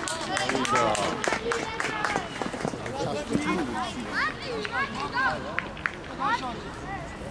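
Children shout and call out across an open field.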